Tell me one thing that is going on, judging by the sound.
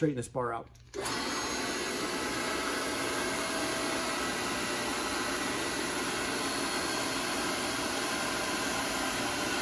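A hydraulic pump motor hums steadily.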